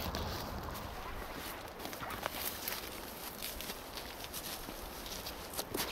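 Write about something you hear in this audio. A dog's paws crunch on snow and dry leaves.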